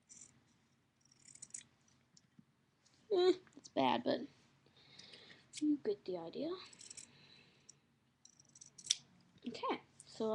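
Paper rustles and crinkles as it is handled.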